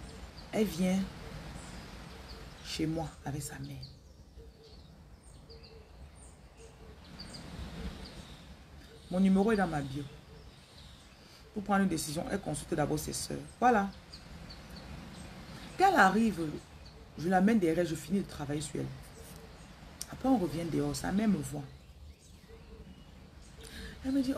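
A woman speaks calmly and closely, with pauses between phrases.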